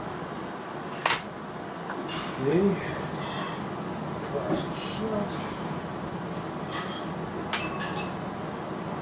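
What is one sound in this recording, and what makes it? Metal parts of a rifle click and clack as they are handled.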